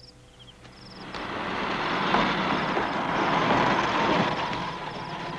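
A metal gate rattles as it swings open.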